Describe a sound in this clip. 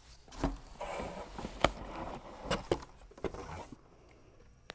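Cardboard rustles and scrapes as a box is unpacked.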